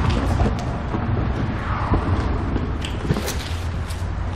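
A man rummages in a car boot with soft knocks and rustles.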